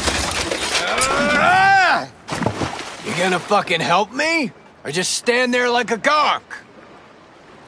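A man shouts loudly and angrily.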